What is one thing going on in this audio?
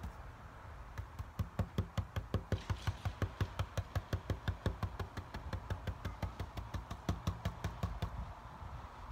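A paintbrush dabs rapidly against a wooden surface.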